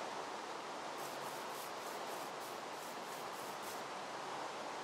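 Footsteps patter softly on grass.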